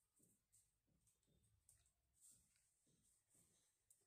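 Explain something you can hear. A lighter clicks and a small flame catches.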